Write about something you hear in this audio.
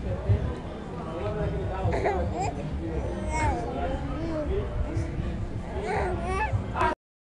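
A baby babbles and coos softly close by.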